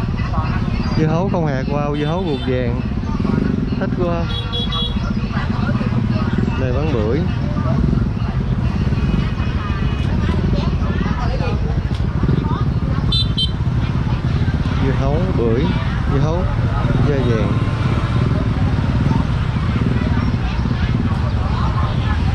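Motorbike engines hum and putter nearby.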